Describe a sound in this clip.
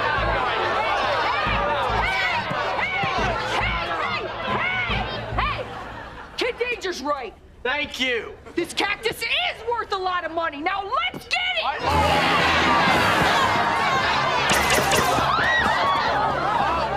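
A crowd cheers and shouts excitedly.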